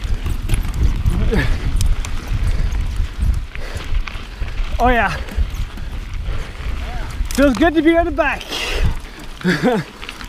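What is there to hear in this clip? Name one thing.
Bicycle tyres crunch over dry dirt.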